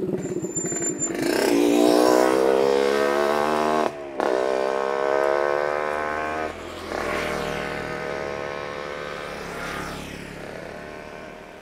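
A motorcycle engine revs up close and then idles.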